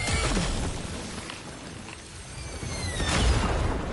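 A horse whinnies shrilly.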